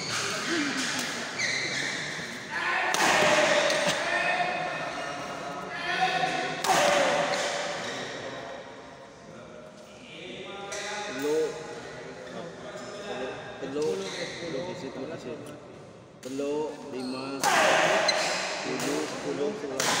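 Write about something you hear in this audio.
Young men shout and call out loudly in an echoing hall.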